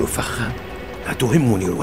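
A second man answers tensely, close by.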